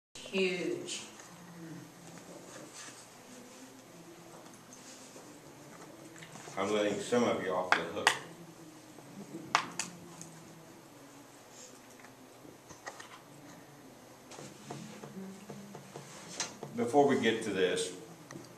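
An elderly man speaks calmly to a small group.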